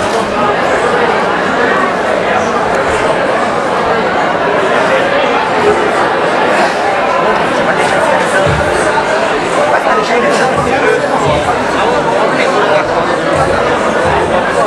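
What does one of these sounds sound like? A large crowd chatters loudly all around in an echoing hall.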